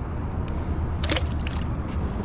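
A small fish splashes into the water.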